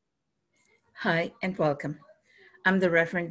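An older woman speaks calmly into a microphone, heard as over an online call.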